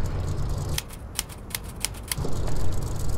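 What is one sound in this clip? A typewriter clacks.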